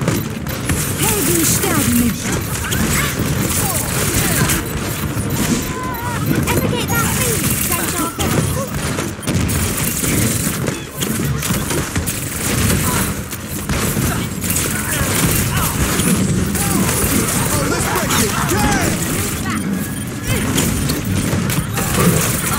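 Video game pistols fire in rapid bursts.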